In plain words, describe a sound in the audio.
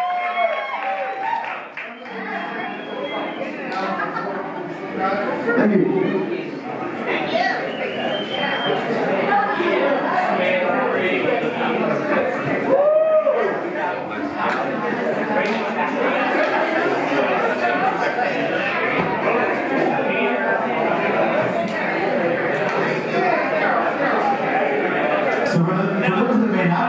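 A crowd of people chatters loudly in an echoing hall.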